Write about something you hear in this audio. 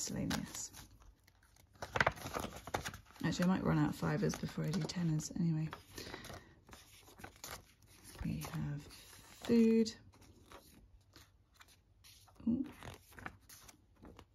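Paper banknotes rustle and crinkle close by.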